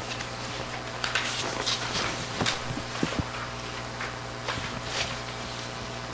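Papers rustle and shuffle on a table.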